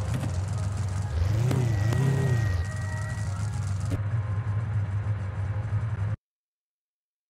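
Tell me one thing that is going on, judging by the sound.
A car engine idles with a deep rumble.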